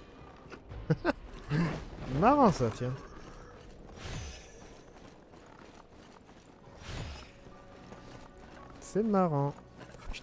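Footsteps crunch on snow and wooden boards.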